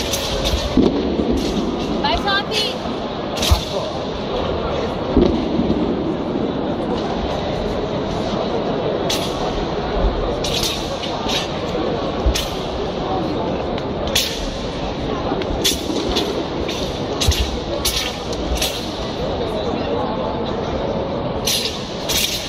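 Feet stamp and slap on a floor mat.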